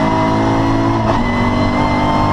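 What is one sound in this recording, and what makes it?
A racing car engine drops in pitch briefly as a gear changes.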